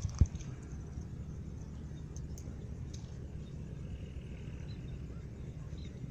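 A small child's hands squelch in wet mud.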